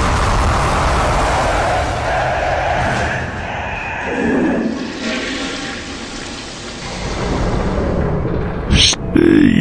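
A rocket engine roars with a steady hissing blast.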